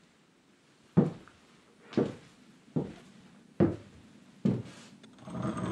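Heavy boots thud slowly on a wooden floor.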